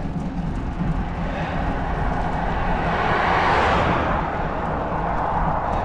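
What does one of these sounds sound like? A car approaches, whooshes past close by and fades away.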